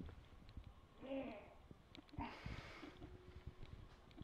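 A young man gags and retches close by.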